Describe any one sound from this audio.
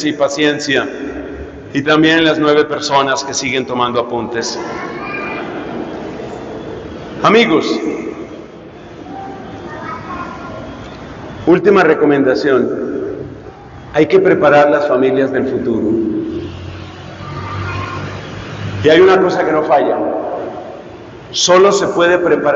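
A middle-aged man speaks calmly through a microphone and loudspeakers in a large echoing hall.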